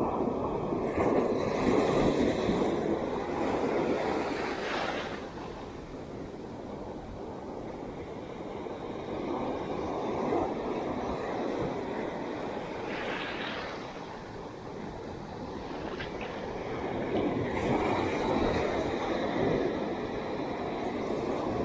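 Waves break and wash over the shore in steady, surging rushes.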